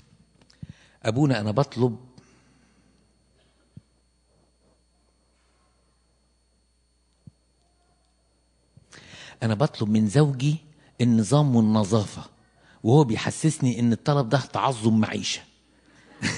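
An elderly man speaks with animation through a microphone in an echoing hall.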